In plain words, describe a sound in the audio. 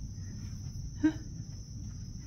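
A horse snorts softly nearby.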